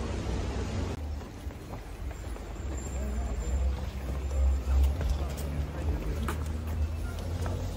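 Men murmur and talk nearby in a crowd.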